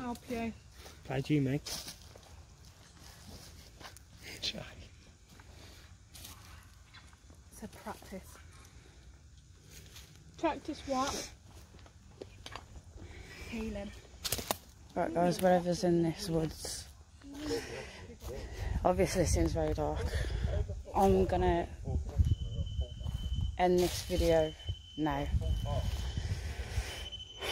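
Footsteps crunch through dry leaves.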